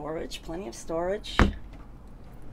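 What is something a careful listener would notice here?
A cabinet door clicks open.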